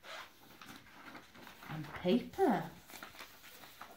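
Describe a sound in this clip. A sheet of paper rustles.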